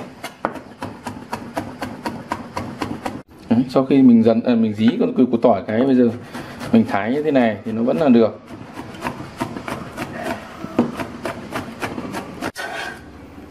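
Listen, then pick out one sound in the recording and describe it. A cleaver chops rapidly on a cutting board.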